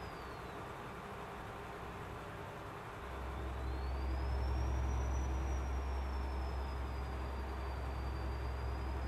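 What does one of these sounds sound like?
A truck engine drones steadily and grows louder.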